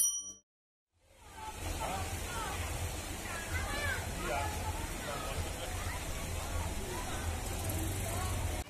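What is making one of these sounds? Children splash and play in shallow floodwater.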